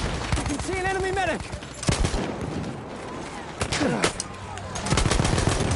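A heavy machine gun fires in rapid bursts close by.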